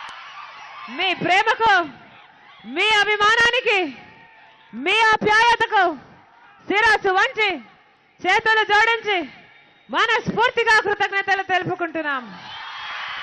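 A young woman speaks loudly and with animation into a microphone, heard through loudspeakers.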